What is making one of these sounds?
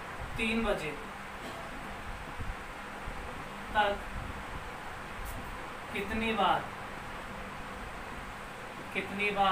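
A young man speaks calmly in short phrases, close by.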